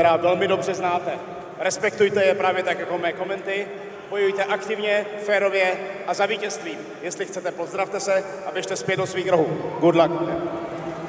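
A man speaks loudly into a microphone over arena loudspeakers.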